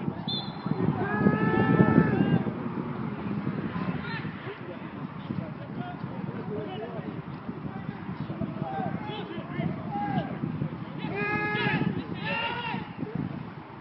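Men shout to each other across a football pitch from a distance.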